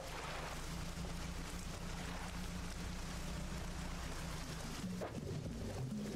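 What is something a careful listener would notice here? Water splashes against a moving boat's hull.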